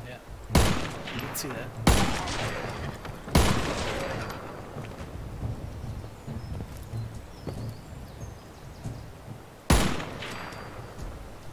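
A rifle fires loud single shots that echo outdoors.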